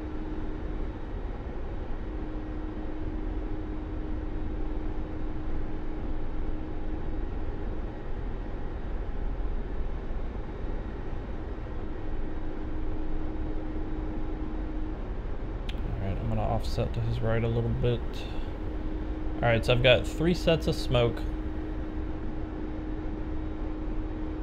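A jet engine roars steadily with a low, constant hum.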